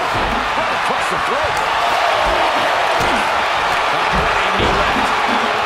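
A large crowd roars and cheers steadily in an arena.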